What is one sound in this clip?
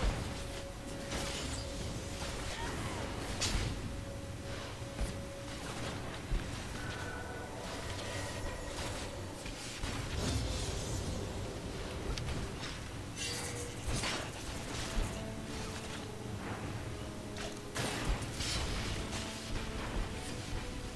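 Spells crackle and whoosh in a video game.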